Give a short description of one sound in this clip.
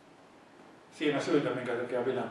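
An elderly man speaks calmly into a microphone over loudspeakers in an echoing room.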